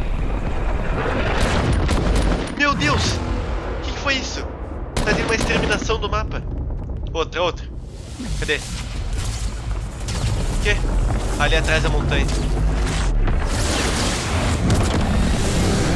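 A rocket roars as it streaks across the sky.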